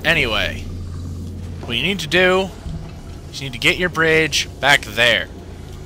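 A low electric hum drones steadily.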